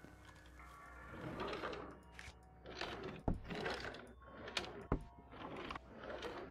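A wooden drawer slides open with a scrape.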